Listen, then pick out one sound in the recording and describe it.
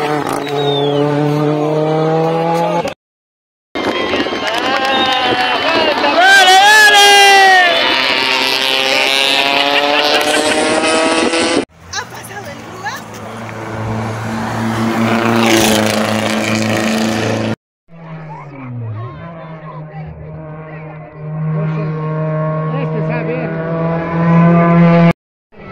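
A rally car engine roars at high revs as the car speeds past.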